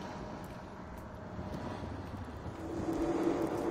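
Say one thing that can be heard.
A horse's hooves clop slowly on stone.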